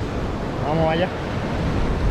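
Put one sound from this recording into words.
A man speaks briefly, close to the microphone.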